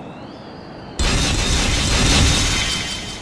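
Metal spikes scrape and grind up out of a stone floor.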